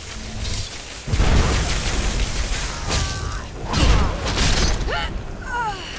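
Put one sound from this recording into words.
A spell bursts with a loud whoosh.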